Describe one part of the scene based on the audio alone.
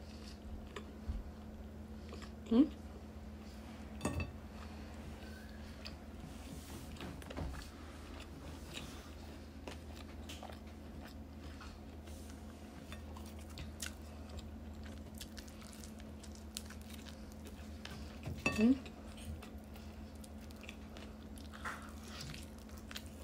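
A woman chews food and smacks her lips close by.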